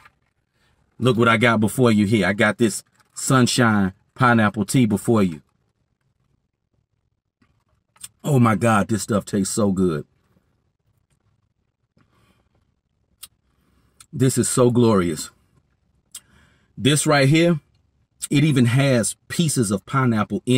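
A man talks with animation close to a phone's microphone.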